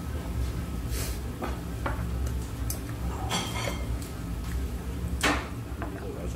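Chopsticks click against a plate.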